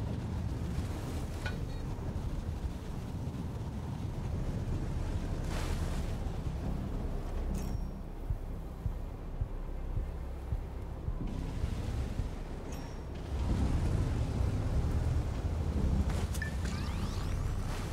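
A tank's tracks splash through water.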